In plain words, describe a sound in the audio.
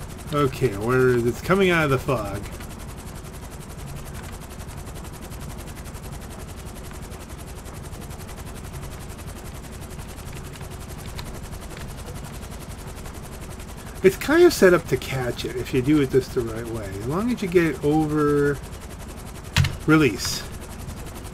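A helicopter's rotor thrums steadily overhead.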